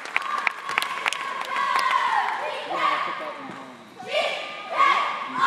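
Young women cheer and shout loudly in an echoing gym.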